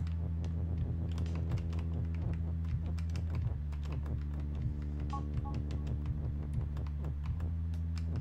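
Steady electronic game music plays with a low droning bass.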